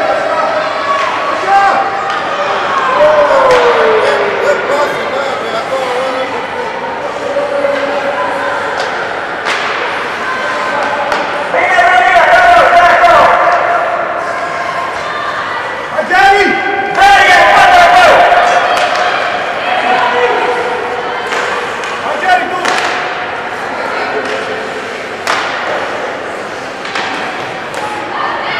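Spectators nearby shout and cheer in an echoing arena.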